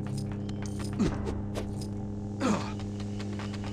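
A lightsaber swooshes through the air twice with falling whooshes.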